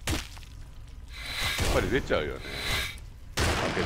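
A fireball bursts with a roaring blast.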